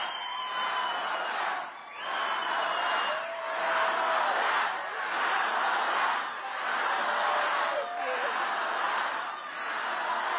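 A woman laughs into a microphone.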